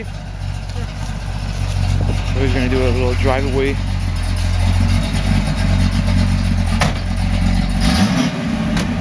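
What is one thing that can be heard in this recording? A car engine idles with a deep, loud rumble.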